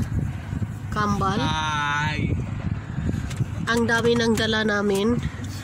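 A teenage boy speaks in a car.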